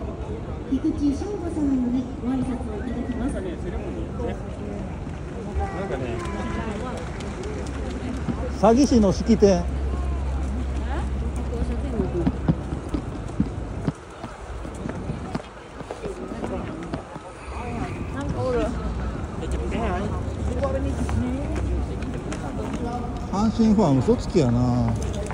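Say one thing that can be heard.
A crowd of men and women talks and chatters nearby outdoors.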